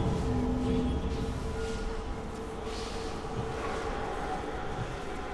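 Magic spells whoosh and chime amid a busy fantasy battle.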